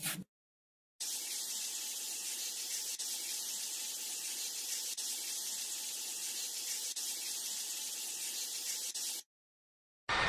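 Water sprays with a steady hiss.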